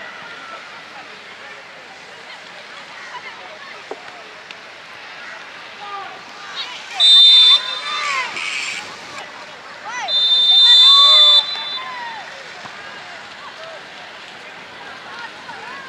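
Young players shout across an open field.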